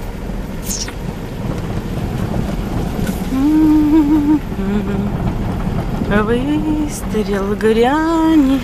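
Tyres crunch and rumble over a rough dirt road.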